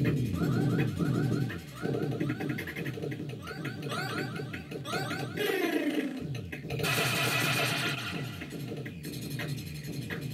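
Arcade shots fire in rapid bursts.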